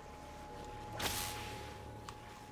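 Electricity crackles and zaps sharply.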